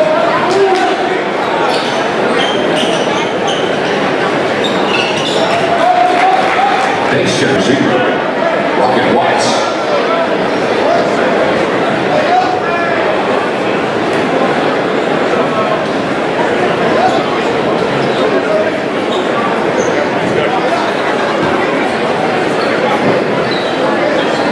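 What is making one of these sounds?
A large crowd murmurs and chatters in an echoing gym.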